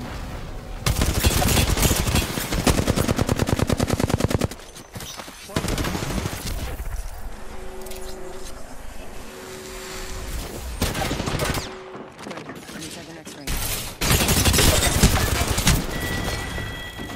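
A rapid-fire gun fires in fast bursts.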